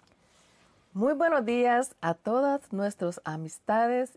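A middle-aged woman speaks with animation close to a microphone.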